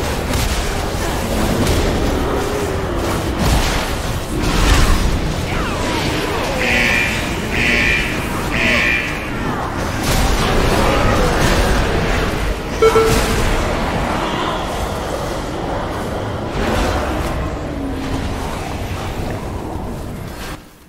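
Game spell effects crackle and whoosh.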